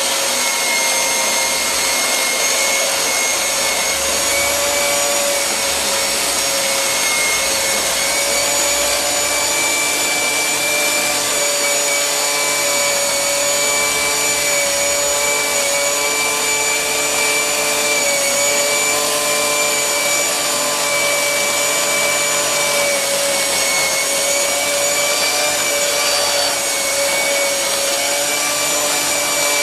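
A vacuum cleaner hums steadily with a loud whine.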